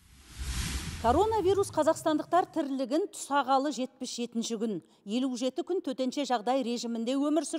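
A woman speaks calmly and clearly into a microphone, like a news presenter.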